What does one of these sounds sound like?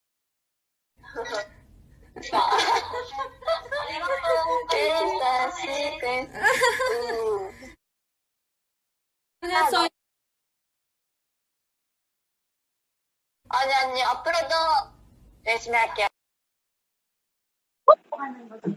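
A young woman talks cheerfully and laughs, heard through a microphone.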